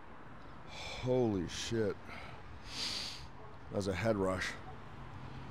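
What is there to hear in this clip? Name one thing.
A man grunts and groans with strain close by.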